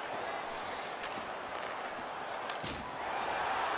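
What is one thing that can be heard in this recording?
A puck cracks against a stick.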